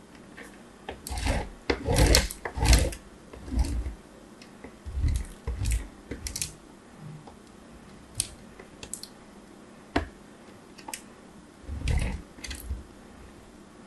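Clay crumbs scrape and rustle against a plastic grater as fingers rub them.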